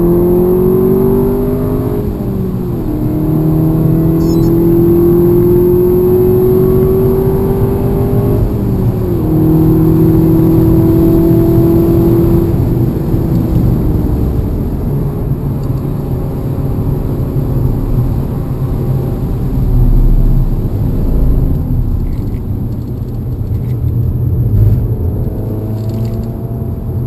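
Tyres rumble over the track.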